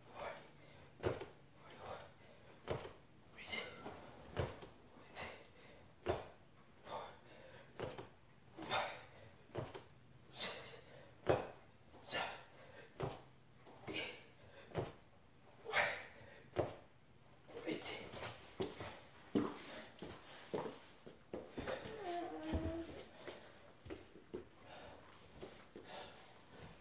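A man breathes hard in quick rhythmic bursts.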